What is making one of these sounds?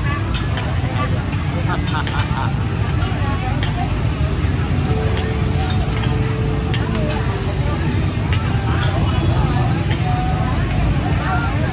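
Metal utensils clink and scrape against pots and pans.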